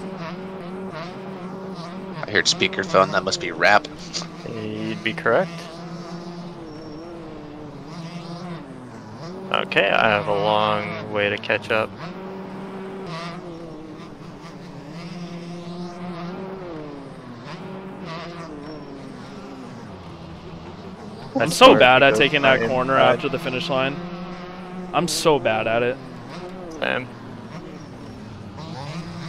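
A dirt bike engine revs up and down, rising and falling in pitch.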